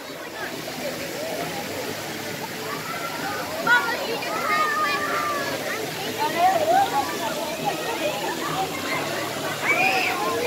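Pool water laps and splashes close by.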